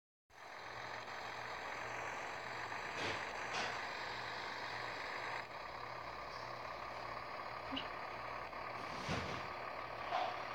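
A heavy truck engine hums steadily as it drives along.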